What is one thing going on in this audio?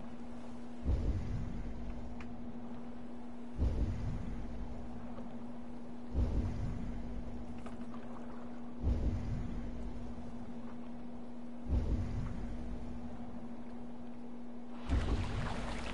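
Rough sea water churns and rushes steadily.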